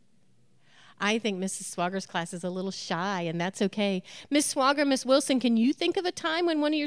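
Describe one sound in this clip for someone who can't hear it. A woman speaks with animation into a microphone in a large hall.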